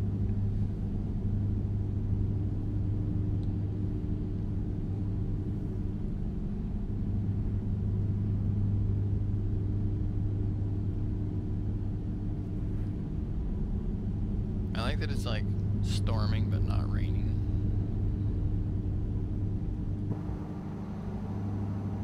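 A truck engine drones steadily at low pitch as it drives.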